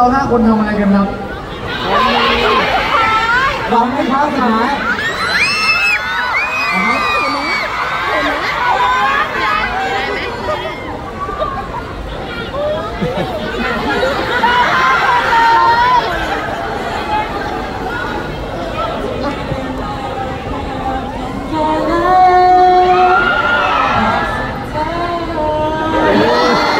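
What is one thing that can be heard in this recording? A crowd cheers and screams.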